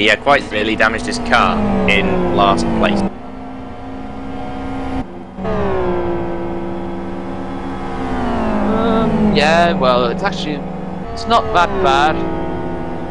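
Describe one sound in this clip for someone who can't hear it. Car engines whine and pop as cars brake into corners.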